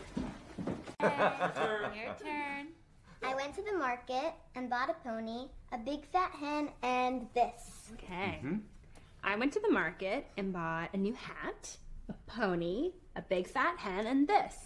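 A young girl talks and giggles excitedly close by.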